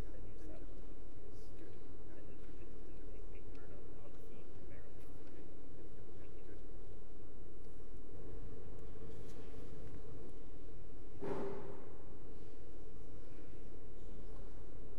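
A pipe organ plays in a large echoing hall.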